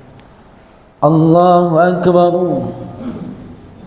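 A man chants a long call in a melodic voice through a microphone, echoing in a large hall.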